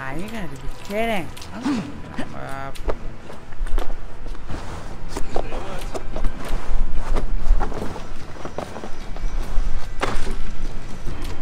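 Hands and feet scuff and thud on wooden beams while climbing.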